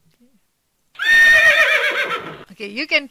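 A recorded horse neighs loudly through a small speaker.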